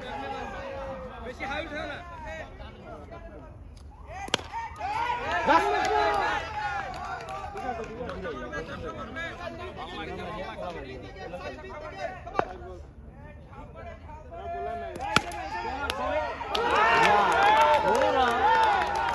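Several young men shout and call out to each other outdoors.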